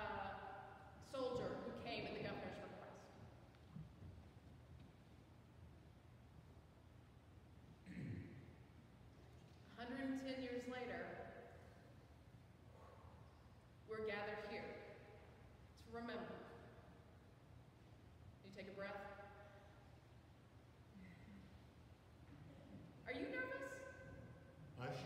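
A woman sings short phrases through a microphone, echoing in a large hall.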